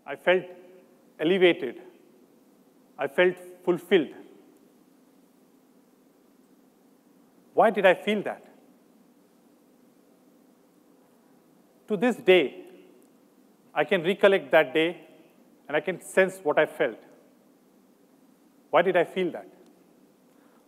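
A man speaks slowly and calmly into a microphone, with long pauses, in a large echoing hall.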